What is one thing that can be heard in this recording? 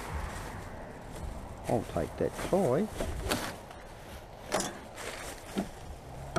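Plastic rubbish rustles and crinkles.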